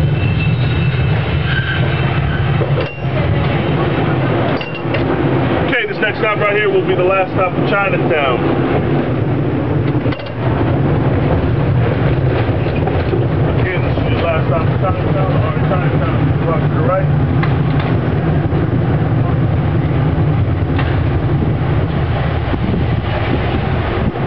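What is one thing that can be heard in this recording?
A cable car rumbles and rattles steadily along its track.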